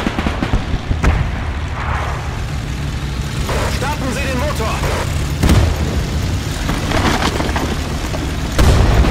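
Explosions boom with a deep thud.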